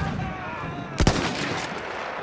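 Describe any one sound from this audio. A rifle fires a sharp, loud shot.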